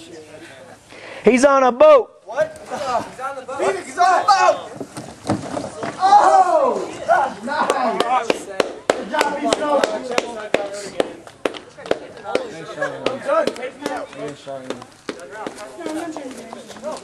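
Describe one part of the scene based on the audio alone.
A crowd of young men shouts and cheers outdoors.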